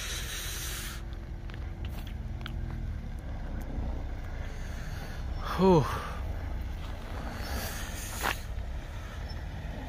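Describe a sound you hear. A car engine revs as tyres spin on snow.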